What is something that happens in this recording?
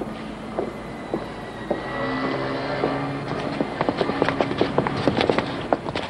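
Shoes tap on paving stones.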